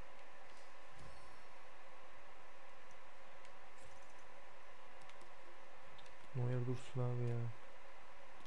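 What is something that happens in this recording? Short electronic menu chimes sound as selections change.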